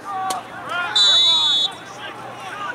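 A referee's whistle blows a long blast.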